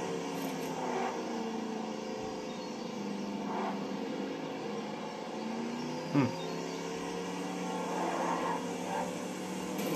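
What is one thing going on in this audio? A car engine hums steadily as a small car drives along a road.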